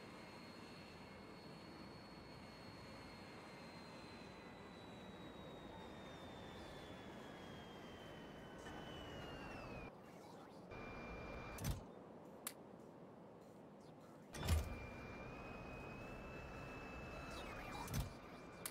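Machines hum and whir steadily.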